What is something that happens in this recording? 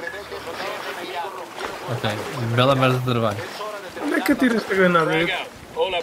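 Water splashes as someone swims through it.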